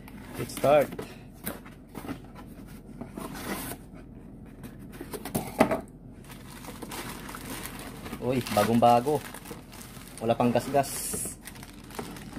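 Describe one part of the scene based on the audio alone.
Cardboard flaps scrape and thump as a box is opened.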